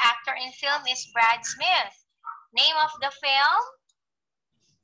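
A young woman speaks clearly through an online call.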